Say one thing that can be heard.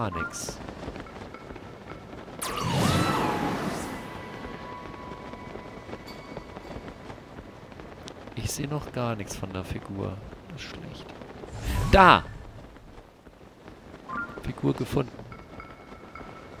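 A soft wind whistles steadily during a glide.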